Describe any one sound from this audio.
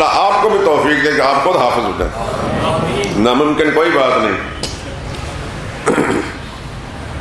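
A middle-aged man speaks with animation into a microphone, heard through a loudspeaker in an echoing hall.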